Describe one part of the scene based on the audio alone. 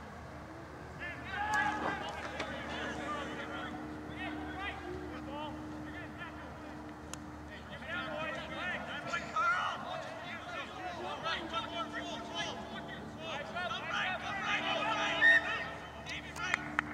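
Players shout to each other across an open field, far off.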